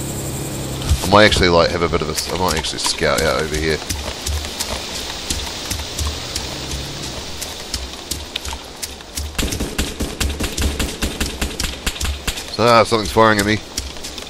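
Footsteps crunch and rustle through grass at a steady walking pace.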